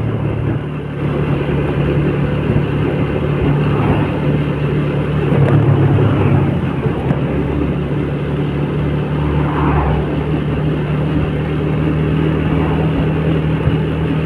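Wind rushes past loudly outdoors.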